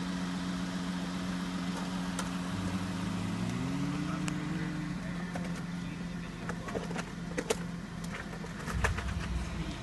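A vehicle engine idles steadily nearby.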